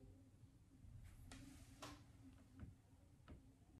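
Clothing rustles and knocks as a man leans toward a microphone.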